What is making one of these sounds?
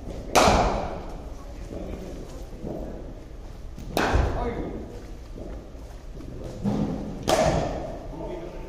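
A cricket bat strikes a cricket ball with a sharp crack that rings through an echoing indoor hall.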